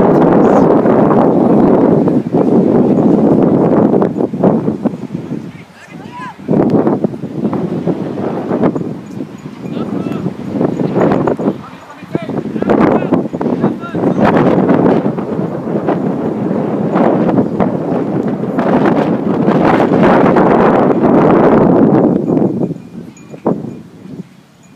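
Wind buffets the microphone outdoors in gusts.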